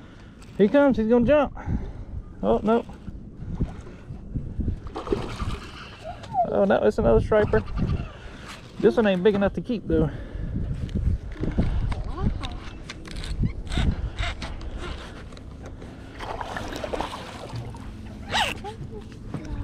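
A fishing reel clicks and whirs as the line is wound in.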